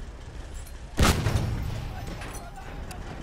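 A vehicle explodes with a loud blast.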